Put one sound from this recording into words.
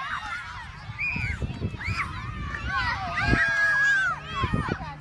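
A crowd of children shout and cheer excitedly outdoors.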